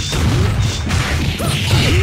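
A fiery blast whooshes and crackles.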